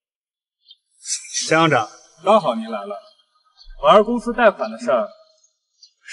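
An older man speaks calmly and close by.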